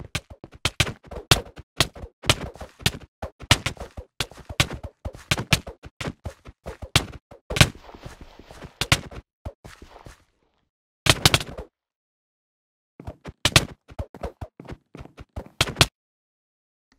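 Sword blows land in quick, sharp hits during a fight.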